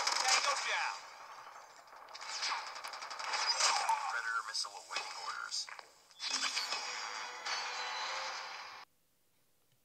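Gunfire and explosions play from a handheld game console's small speaker.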